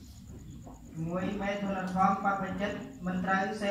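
A group of young boys recites aloud together in unison.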